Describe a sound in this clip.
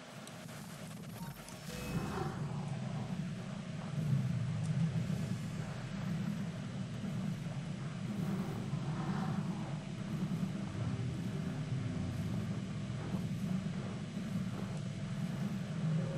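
A young man talks quietly into a microphone.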